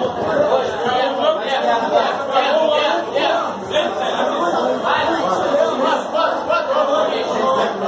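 Several men talk with animation nearby.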